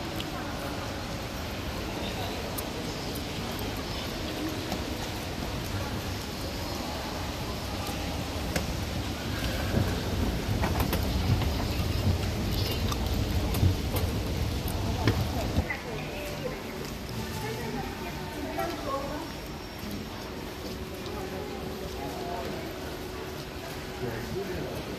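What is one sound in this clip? Indistinct voices murmur in a large echoing hall.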